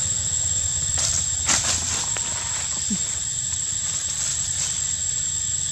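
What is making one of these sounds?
Dry leaves rustle as a small monkey moves on the forest floor.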